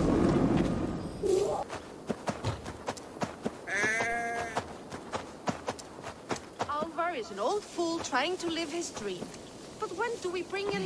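A horse's hooves thud as it trots over grass.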